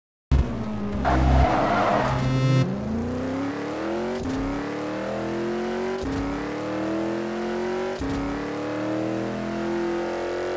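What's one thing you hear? A car engine roars and climbs in pitch, dropping briefly with each gear change.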